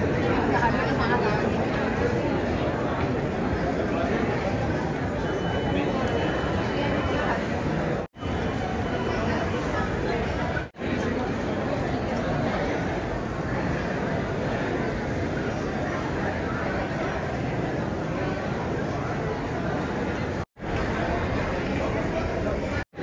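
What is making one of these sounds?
A crowd of men and women chatters all around, close by, in a large hall.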